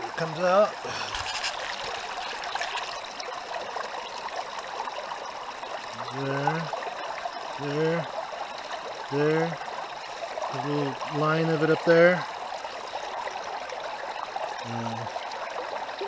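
Water sloshes and swirls in a plastic pan.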